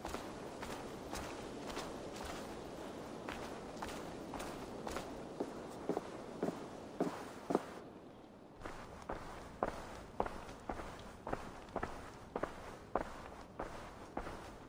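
Footsteps thud steadily.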